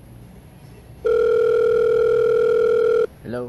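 A phone gives out a loud, steady tone close by.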